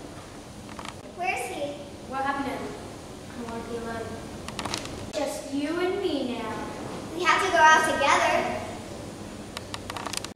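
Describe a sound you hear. Children talk and call out nearby.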